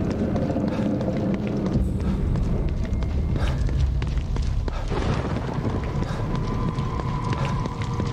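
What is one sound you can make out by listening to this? Footsteps run on a wet street.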